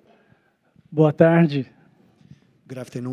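A man speaks loudly and excitedly through a microphone.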